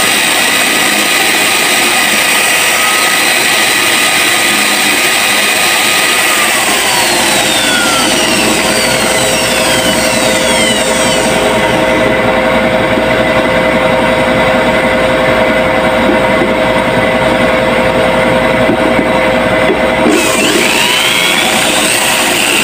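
An electric drill whirs steadily.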